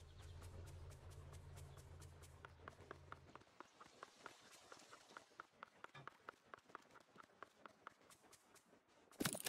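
Quick footsteps patter on a path.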